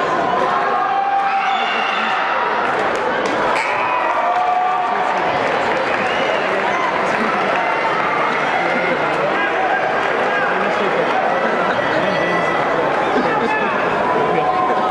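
A crowd chatters and shouts steadily in a large echoing gym.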